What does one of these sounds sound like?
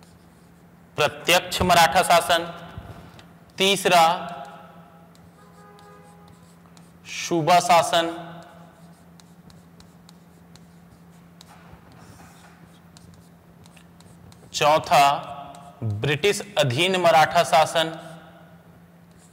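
A man speaks in short bursts, close to a microphone, in a lecturing tone.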